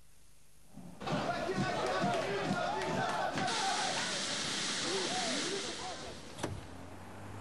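A crowd of men and women cheers loudly.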